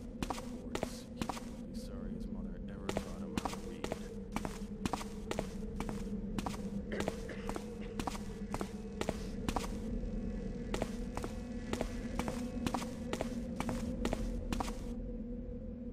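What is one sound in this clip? Footsteps walk steadily on stone cobbles.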